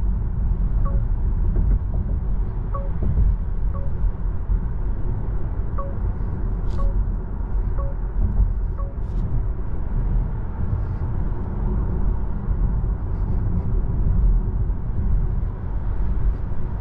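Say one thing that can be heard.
Tyres rumble steadily on a road from inside a moving car.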